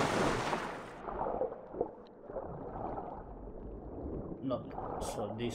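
Water gurgles and bubbles, muffled as if heard underwater.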